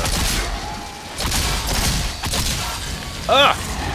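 Electric bolts crackle and zap loudly.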